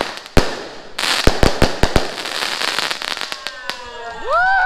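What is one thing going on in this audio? Fireworks crackle and fizzle overhead.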